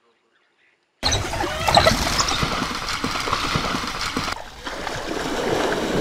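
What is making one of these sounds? A hippo thrashes and splashes in a river.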